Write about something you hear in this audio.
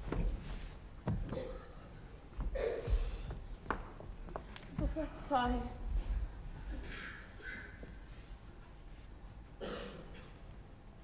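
A woman speaks with feeling, heard from across a stage.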